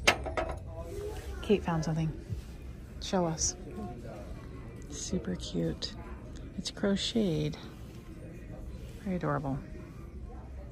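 A woman talks nearby in a lively, casual way.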